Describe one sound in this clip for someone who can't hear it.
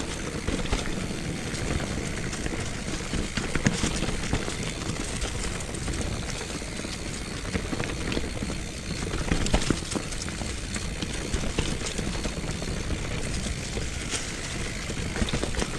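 A bicycle frame rattles and clunks over bumps.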